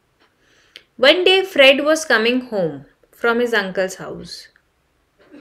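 A young woman speaks clearly into a close microphone, explaining calmly.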